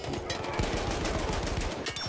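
Gunshots crack sharply nearby.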